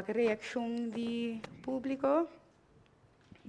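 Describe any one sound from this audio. A woman sings loudly nearby.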